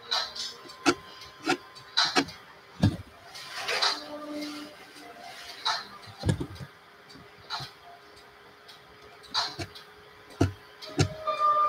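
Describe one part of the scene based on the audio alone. A brush taps and scratches lightly on paper.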